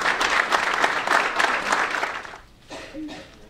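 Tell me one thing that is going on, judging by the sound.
A small audience applauds.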